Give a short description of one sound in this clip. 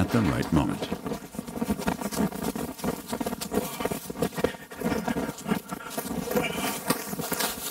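A man runs through dry grass with crunching footsteps.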